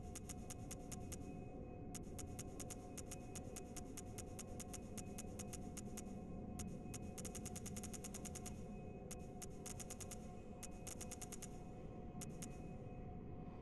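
Rapid soft menu clicks tick in quick bursts.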